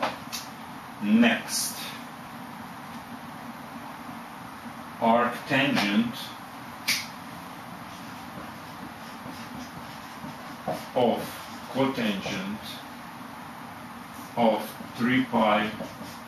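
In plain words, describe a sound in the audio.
A man speaks calmly, close by, in short phrases.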